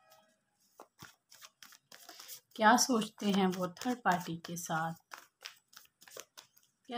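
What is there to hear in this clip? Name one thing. Paper banknotes rustle and flick as a hand counts them.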